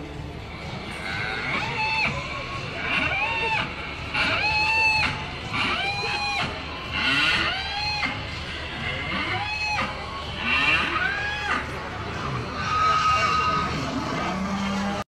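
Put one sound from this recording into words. A crowd of women and men chants slogans loudly in unison outdoors.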